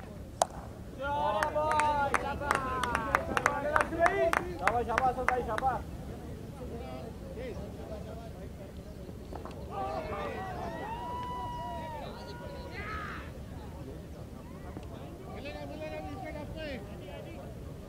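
Men shout and call out across an open field.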